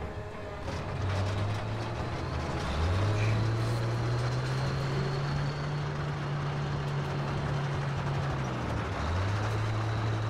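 Tank tracks clank and rattle over rubble.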